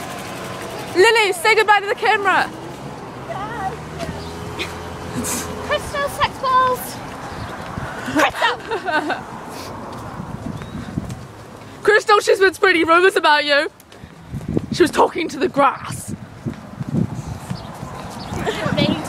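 Teenage girls talk and shout excitedly close by.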